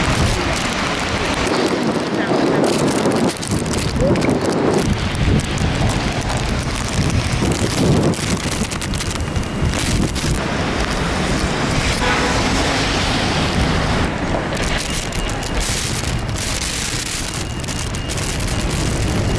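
Strong wind gusts and roars outdoors.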